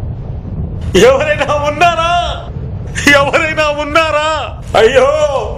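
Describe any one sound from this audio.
A man cries out in a loud, wailing voice.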